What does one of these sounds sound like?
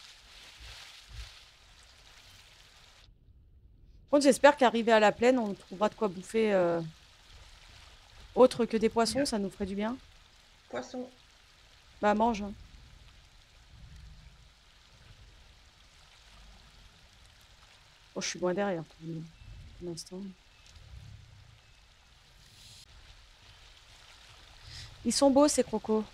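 Water laps and splashes softly as an animal swims.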